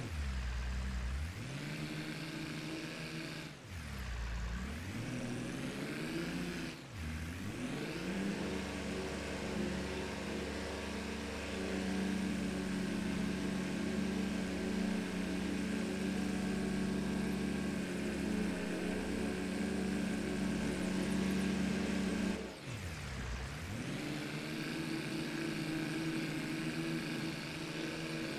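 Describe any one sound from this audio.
A tractor engine drones steadily, its pitch shifting as it speeds up and slows down.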